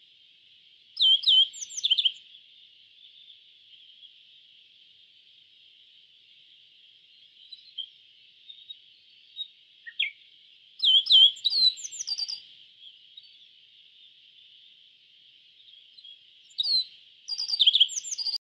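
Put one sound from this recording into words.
A small bird sings short bursts of high, chirping song, with pauses between them.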